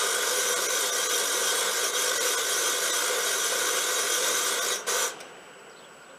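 A small lawn tractor engine runs with a steady high whine, then cuts out abruptly.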